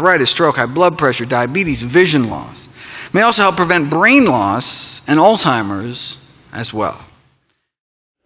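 A middle-aged man lectures with animation through a microphone in a large hall.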